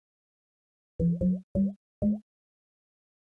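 Bright game chimes ring out in quick rising steps.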